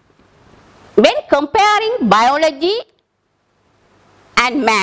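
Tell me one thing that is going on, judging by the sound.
A woman speaks clearly into a close microphone, explaining.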